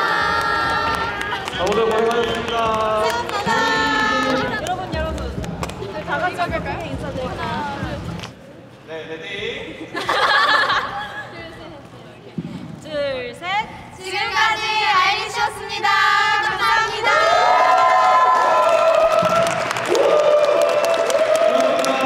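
Young women clap their hands.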